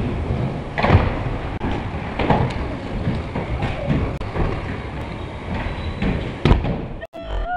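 A scooter deck clacks against a ramp.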